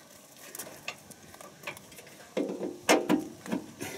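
A plug snaps into a socket.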